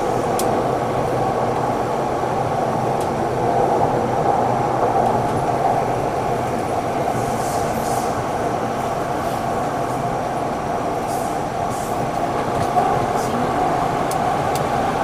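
Train wheels click and squeak on the rails.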